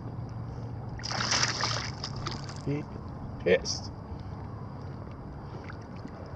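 An animal splashes as it swims through the water.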